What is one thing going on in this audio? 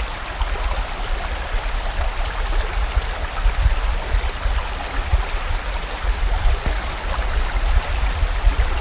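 A stream rushes and gurgles over rocks.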